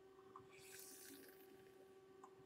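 A man exhales smoke with a soft breathy hiss.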